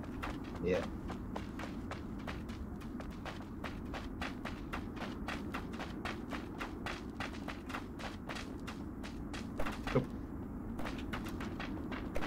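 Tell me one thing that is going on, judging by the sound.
Footsteps patter quickly on grass and dirt in a video game.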